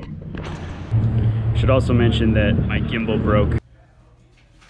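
A man talks to the listener up close, with animation.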